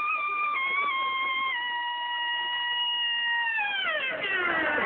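A big band plays a brassy tune.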